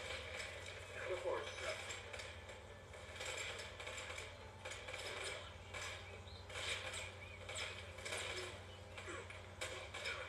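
Gunshots crack repeatedly from a video game through small speakers.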